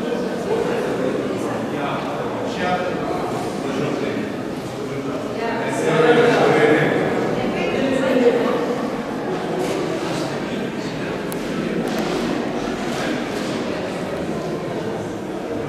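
Several adults and children murmur and chat softly in a large echoing hall.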